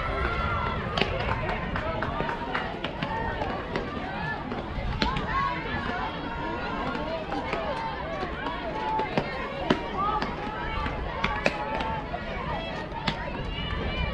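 A softball thuds into a glove as players throw it around.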